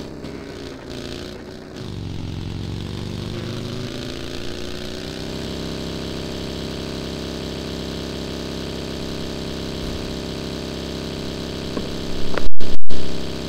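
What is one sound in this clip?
A buggy engine drones steadily as the buggy drives along.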